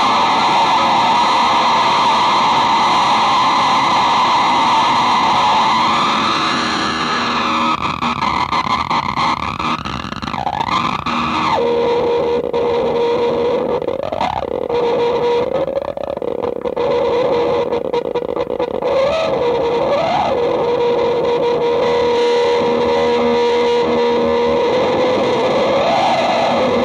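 An electric guitar screeches and howls with loud, wavering feedback that glides up and down in pitch.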